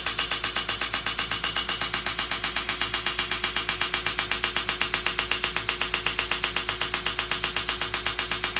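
A laser device clicks in fast, steady pulses.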